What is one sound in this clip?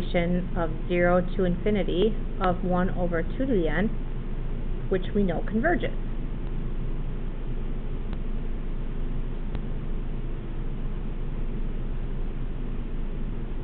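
A pen scratches across paper as it writes.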